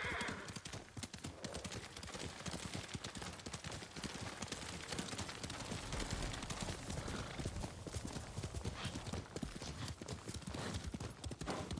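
A horse gallops with quick, heavy hoofbeats.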